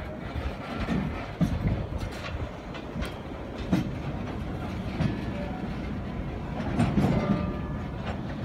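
A heavy machine's diesel engine rumbles steadily in the distance.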